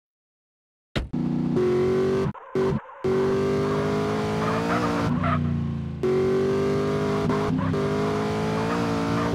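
A car engine revs and hums as the car drives off.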